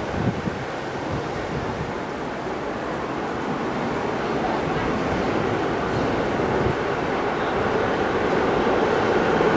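A subway train rumbles along the tracks, growing louder as it approaches.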